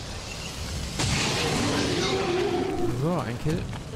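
A gun fires a loud shot.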